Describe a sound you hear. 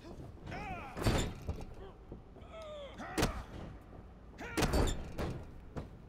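Heavy punches thud with a booming impact.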